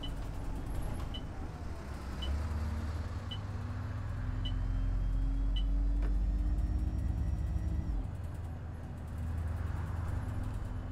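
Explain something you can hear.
A diesel single-deck bus engine drones under load, heard from the cab, as the bus drives along.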